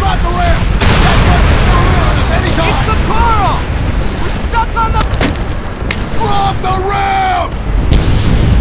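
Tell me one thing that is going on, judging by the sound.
Gunfire and explosions boom nearby.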